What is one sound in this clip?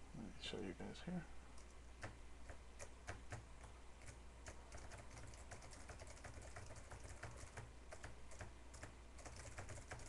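Fingers type on a laptop keyboard.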